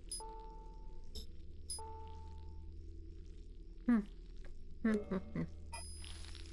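Menu beeps chime as a cursor moves.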